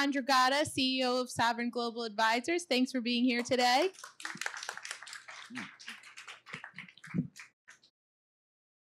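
A woman speaks with animation over a microphone.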